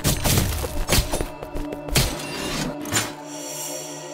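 Sword slashes whoosh and strike with heavy thuds in quick succession.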